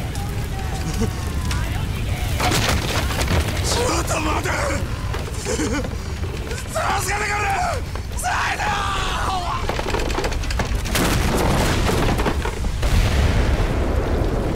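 Fire roars and crackles loudly.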